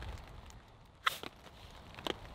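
A ferro rod scrapes sharply and throws sparks.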